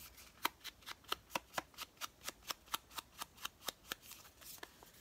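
A foam tool taps quickly and steadily against paper.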